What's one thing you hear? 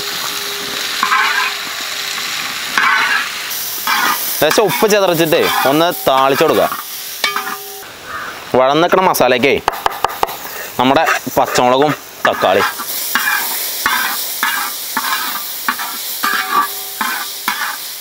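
A spatula scrapes against a metal pan.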